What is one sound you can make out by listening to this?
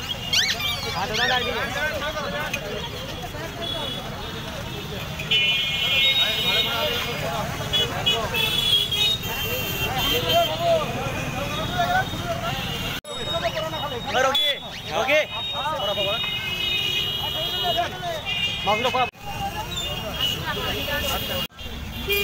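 Several men talk loudly at once in a busy street crowd outdoors.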